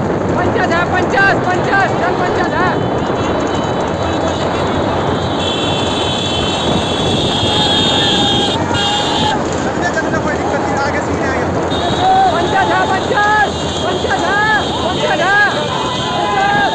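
Men shout and cheer excitedly nearby.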